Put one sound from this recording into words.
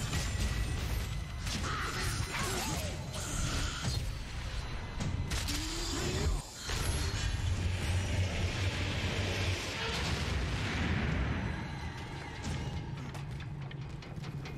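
A heavy blade swings and strikes with sharp metallic hits.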